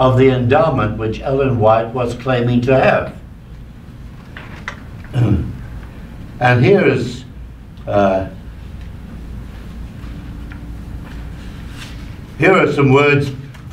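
An elderly man speaks slowly and haltingly into a microphone, with pauses.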